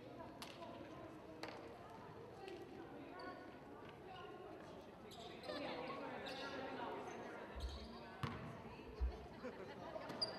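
A crowd of players and onlookers chatter and call out in a large echoing gym.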